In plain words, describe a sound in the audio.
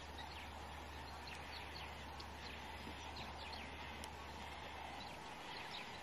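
Guineafowl chirp softly while foraging.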